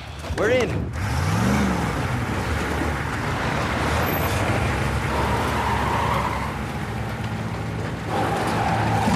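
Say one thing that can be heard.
A truck's engine rumbles as it pulls away.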